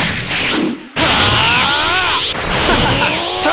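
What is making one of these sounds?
A crackling energy aura surges as power charges up.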